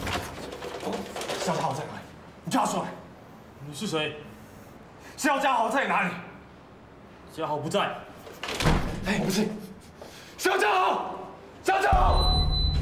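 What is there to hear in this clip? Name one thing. A young man shouts urgently through a door.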